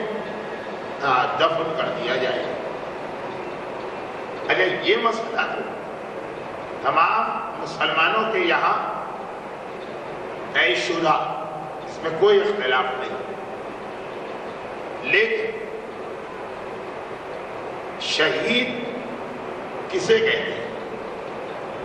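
A middle-aged man speaks slowly and earnestly into a microphone, heard through a loudspeaker with pauses between phrases.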